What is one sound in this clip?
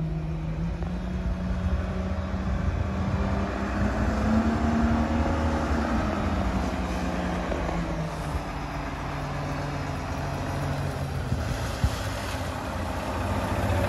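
A heavy truck drives closer, its engine growing louder.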